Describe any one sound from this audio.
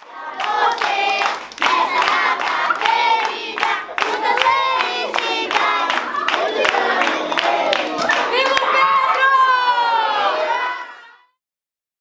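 Young children sing together loudly and close by.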